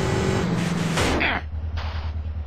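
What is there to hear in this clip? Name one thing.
A motorcycle crashes with a loud thud.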